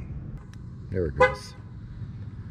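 A truck horn chirps briefly.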